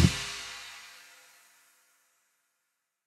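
A band strikes a final chord that rings out and slowly fades.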